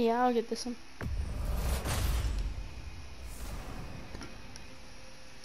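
A deep rumbling whoosh swells and fades away.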